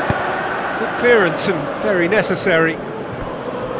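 A referee's whistle blows a few sharp blasts.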